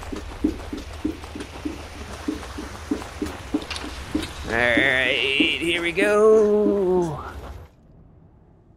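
Feet slide in steps on a low-friction treadmill platform.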